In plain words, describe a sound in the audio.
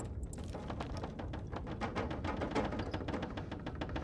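Water is gulped down in slow swallows.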